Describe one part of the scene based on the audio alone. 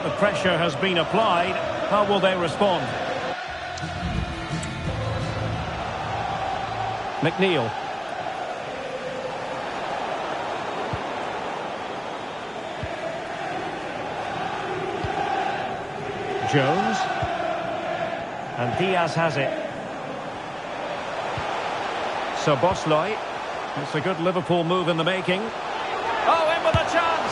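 A large crowd roars and chants steadily in a stadium.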